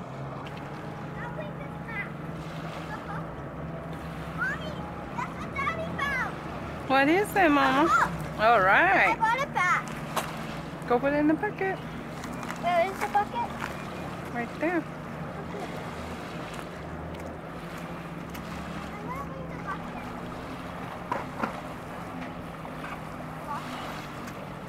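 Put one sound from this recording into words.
A boat engine idles nearby with a low steady hum.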